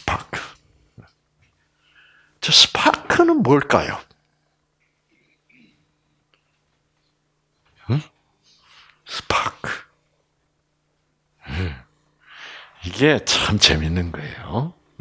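An elderly man speaks with animation, in bursts with pauses.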